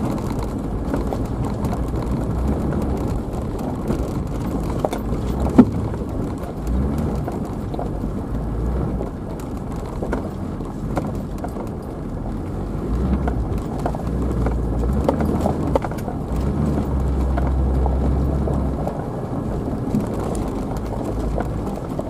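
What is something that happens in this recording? A vehicle engine rumbles low as it drives slowly over a rough dirt track.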